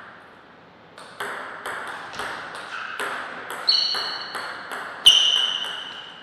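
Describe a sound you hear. A table tennis ball clicks back and forth off paddles and the table in a quick rally.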